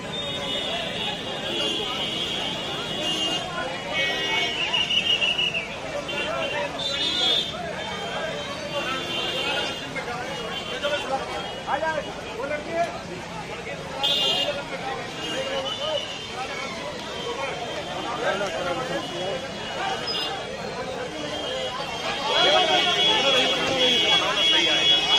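A crowd of men and women chatter and call out nearby outdoors.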